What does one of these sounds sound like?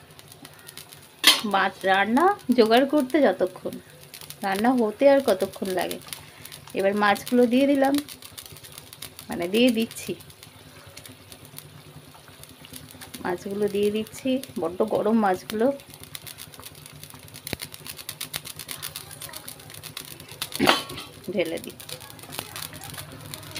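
A thick sauce simmers softly in a pan.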